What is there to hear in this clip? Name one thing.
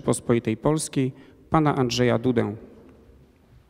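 A man announces through a loudspeaker in a large echoing hall.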